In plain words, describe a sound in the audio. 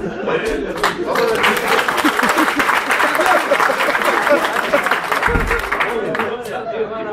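A crowd of men claps along.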